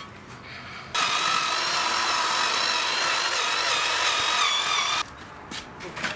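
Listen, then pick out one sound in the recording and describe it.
A power drill whirs steadily.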